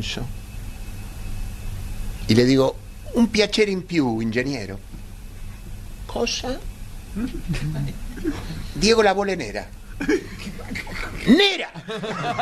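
An elderly man speaks with animation close to a microphone.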